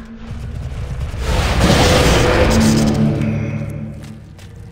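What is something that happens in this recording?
Magic spells burst and whoosh in a game.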